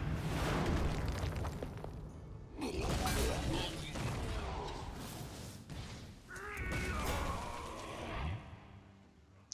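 Game effects crackle and whoosh.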